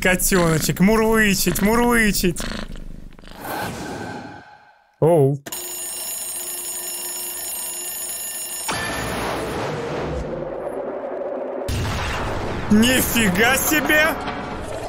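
A young man laughs and shouts with animation close to a microphone.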